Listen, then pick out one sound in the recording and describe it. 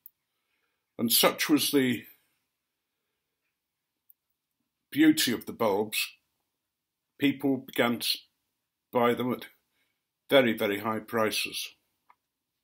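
An elderly man speaks calmly and slowly, close to a microphone, with pauses between phrases.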